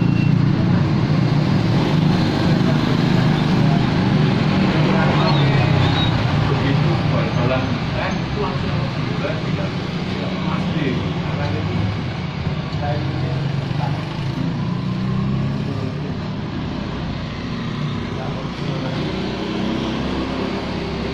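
Motorbike engines hum and pass by on a road.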